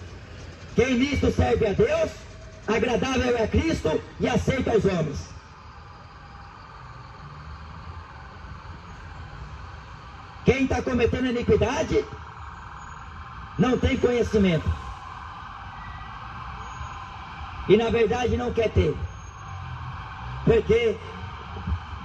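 A man speaks into a microphone through a loudspeaker outdoors, in short bursts with pauses.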